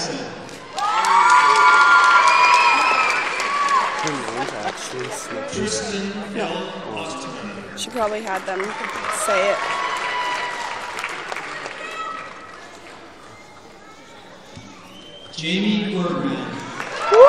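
An audience cheers and screams loudly in a large hall.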